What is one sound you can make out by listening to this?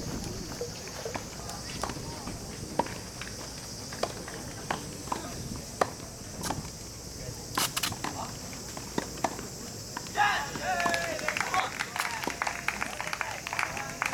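Tennis balls are struck with rackets, giving sharp pops at a distance.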